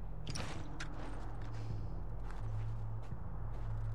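Footsteps crunch softly through dry grass and snow.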